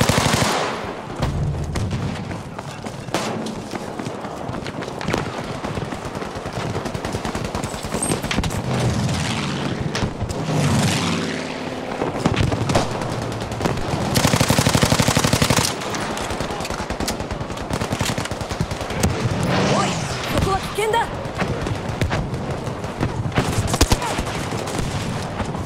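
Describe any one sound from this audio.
Gunfire rattles steadily in the distance.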